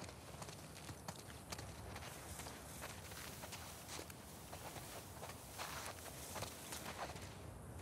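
Leaves and branches rustle.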